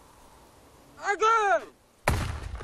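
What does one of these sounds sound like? A man shouts a command outdoors.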